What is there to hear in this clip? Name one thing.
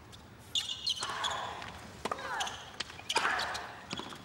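A tennis ball is struck sharply by a racket, back and forth.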